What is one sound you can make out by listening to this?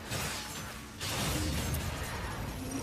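A laser beam blasts with a loud hum.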